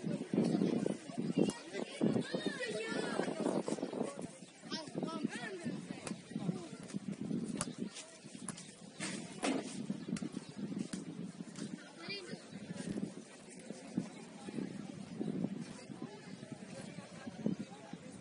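A crowd of spectators chatters in the distance.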